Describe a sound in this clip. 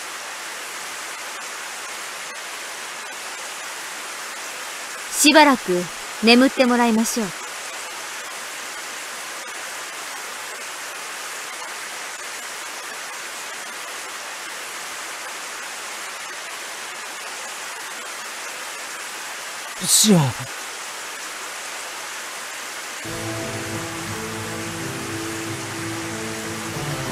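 Steady rain pours down outdoors.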